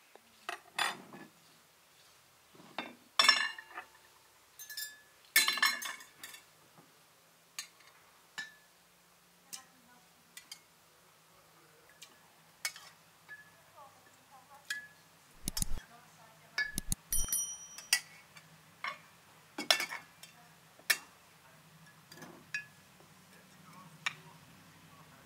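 A metal spoon clinks against dishes.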